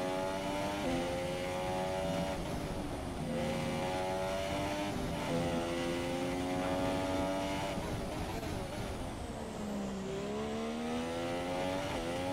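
A racing car engine screams at high revs, rising through the gears and dropping when braking.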